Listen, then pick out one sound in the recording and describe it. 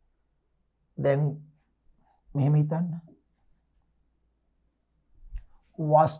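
A man speaks calmly into a close microphone, in short phrases.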